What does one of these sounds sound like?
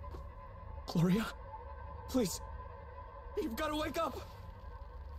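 A young man pleads urgently, his voice strained.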